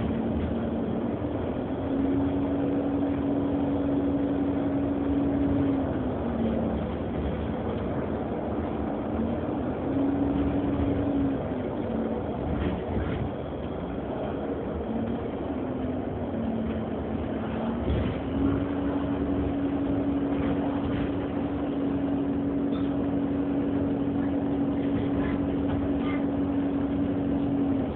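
A bus engine hums steadily, rising and falling in pitch as the bus drives.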